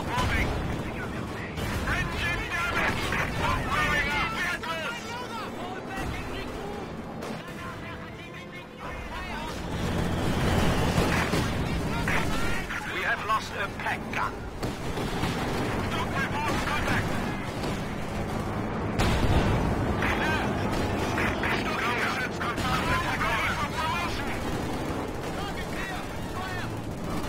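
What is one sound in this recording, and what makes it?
Guns fire in short bursts.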